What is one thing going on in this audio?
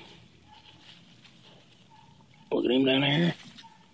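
Leaves rustle as a hand brushes through plants.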